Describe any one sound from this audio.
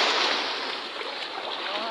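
Water splashes as a net is dragged through the shallows.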